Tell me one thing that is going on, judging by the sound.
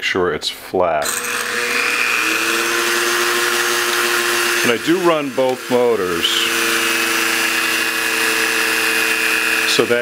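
A small rotary tool whines steadily at high speed.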